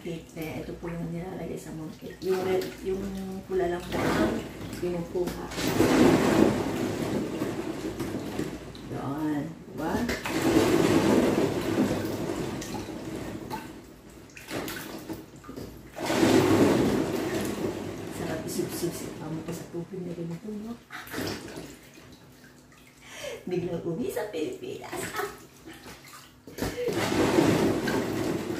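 Hands scrub and rub under running water.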